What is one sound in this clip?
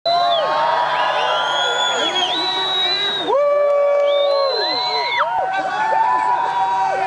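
Several sirens wail overlapping, their pitches sliding up and down.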